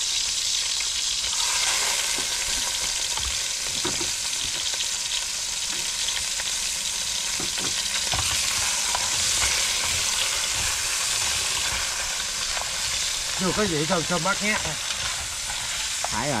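Fish clatter in a metal pot.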